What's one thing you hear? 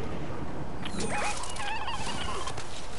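A bright magical burst crackles and shimmers.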